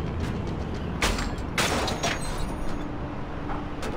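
A metal box lid clanks open.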